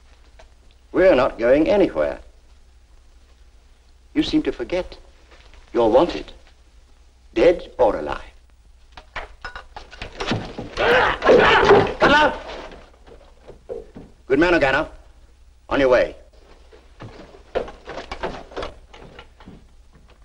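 A man speaks calmly nearby in short phrases.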